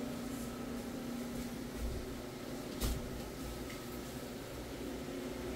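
A floor scrubbing machine hums steadily.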